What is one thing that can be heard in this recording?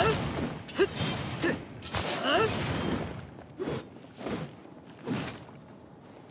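A sword whooshes through the air in fiery slashes.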